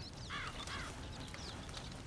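A campfire crackles nearby.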